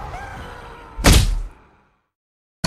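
A heavy thud of a kick lands.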